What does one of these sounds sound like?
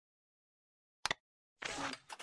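A game menu clicks open with a short electronic tone.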